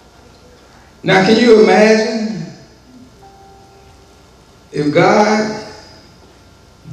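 A man speaks into a microphone in short, loud phrases, with pauses between them, in an echoing room.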